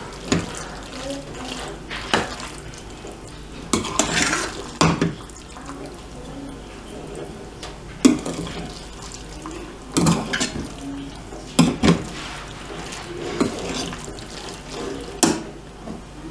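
A metal spoon scrapes and clinks against a pan while stirring food.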